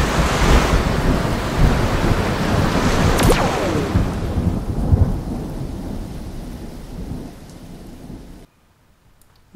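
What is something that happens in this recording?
Sea water splashes and washes.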